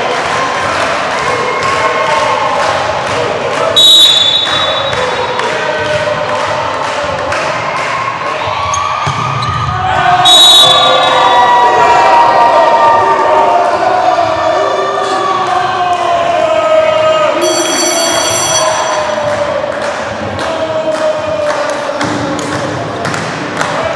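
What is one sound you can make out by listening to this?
A crowd cheers and chants loudly in an echoing sports hall.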